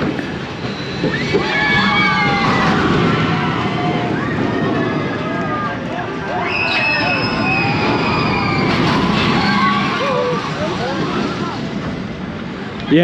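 Riders scream on a roller coaster.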